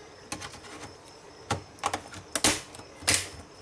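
A keyboard clicks and snaps as it is pressed into a laptop.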